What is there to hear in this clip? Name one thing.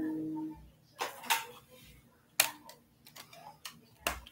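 Hands knock and fumble against a guitar.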